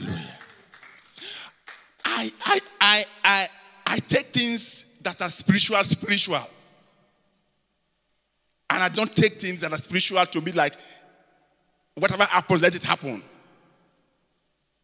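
A man preaches with animation through a microphone, his voice echoing in a large hall.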